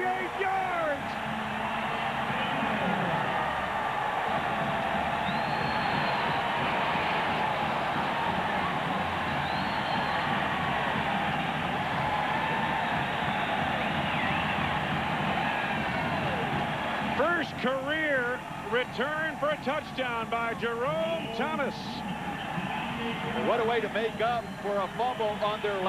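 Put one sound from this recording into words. A large crowd cheers and roars loudly in an open stadium.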